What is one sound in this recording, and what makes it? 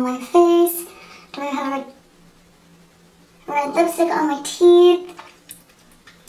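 A young woman speaks playfully, close to a microphone.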